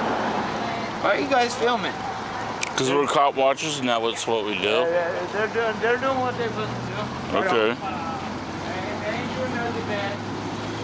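A man speaks close by in a conversational tone.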